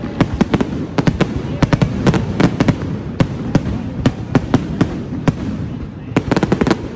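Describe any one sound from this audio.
Fireworks bang and crackle in rapid bursts outdoors.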